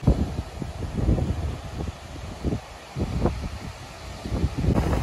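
Ocean waves break and wash onto a sandy beach.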